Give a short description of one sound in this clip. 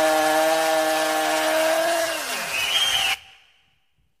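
A man sings a long held note into a microphone, then lets it fall away.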